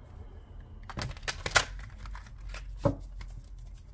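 Cards rustle and tap as a hand handles a deck.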